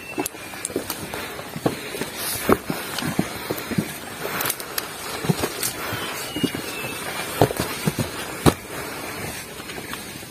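Footsteps crunch and scrape on a dirt trail.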